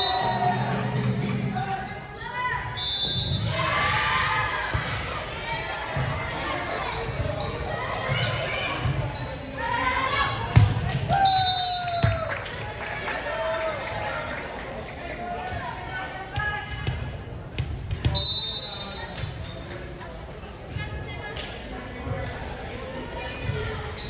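Young women call out and shout to each other across a large echoing gym.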